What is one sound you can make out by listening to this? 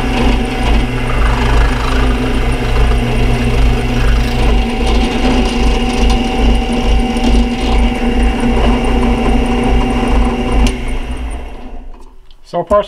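A drill press whirs steadily as it bores through material.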